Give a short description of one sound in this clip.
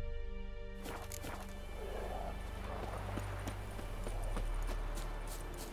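Footsteps run over a dirt path.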